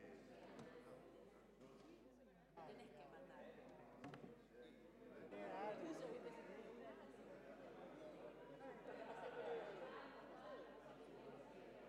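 A crowd of men and women chatter and talk over each other in a large echoing hall.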